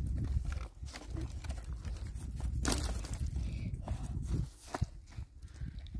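Dry sticks rustle and crack as a boy handles them.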